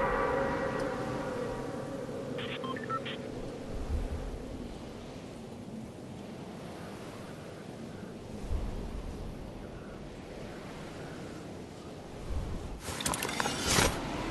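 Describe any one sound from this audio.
Wind rushes past during a freefall.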